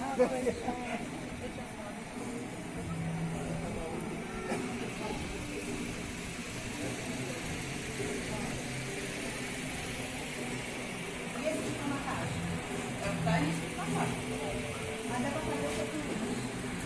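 Several adult men and women talk at once nearby in an indoor murmur.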